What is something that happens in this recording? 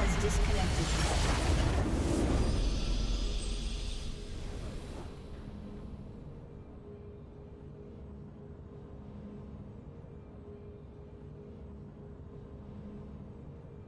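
A victory fanfare swells and then fades to a soft hum.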